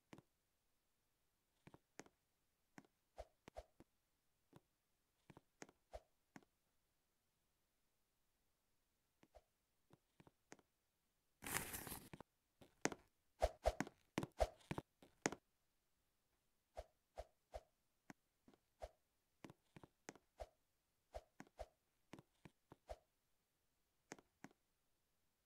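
Footsteps patter and thud in short bursts.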